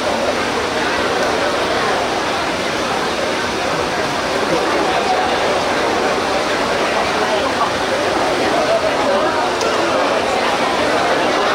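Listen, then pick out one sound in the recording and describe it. Many men chant together.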